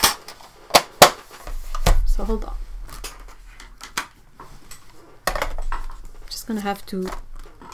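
Hands set plastic cases down on a table with light clacks.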